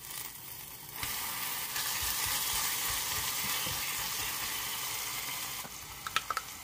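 Tofu sizzles loudly as it hits a hot pot.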